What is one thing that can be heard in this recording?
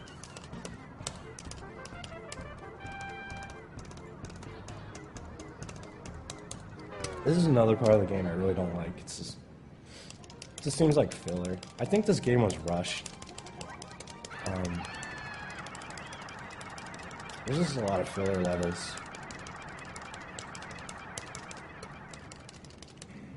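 Buttons on a game controller click rapidly.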